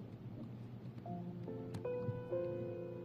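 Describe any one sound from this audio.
A piano plays a few notes.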